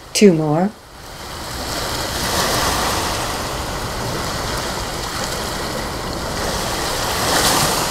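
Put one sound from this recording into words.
Ocean waves wash onto a beach.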